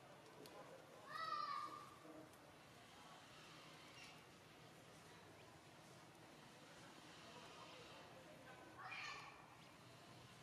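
A baby monkey squeals shrilly now and then.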